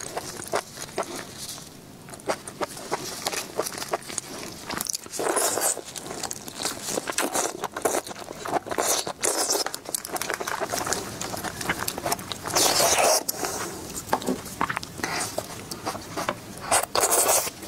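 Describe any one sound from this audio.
Crab and lobster shells crack and crunch close to a microphone.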